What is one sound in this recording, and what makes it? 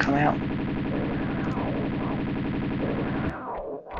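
Pistols fire in quick bursts.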